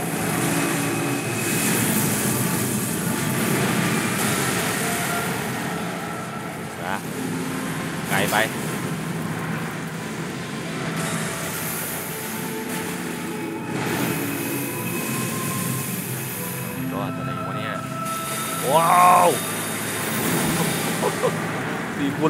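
Splashing water sounds as a fighter moves through shallow water.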